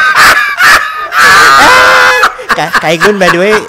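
A man laughs loudly near a microphone.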